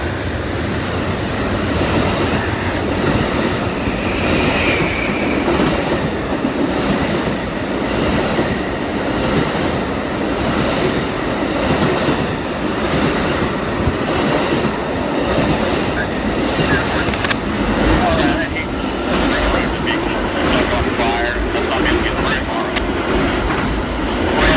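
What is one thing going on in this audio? A long train rumbles past close by at speed.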